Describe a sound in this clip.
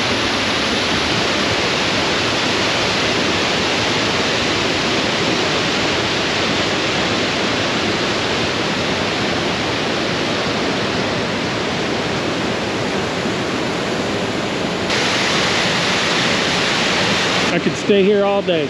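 Water rushes and roars steadily over rocks.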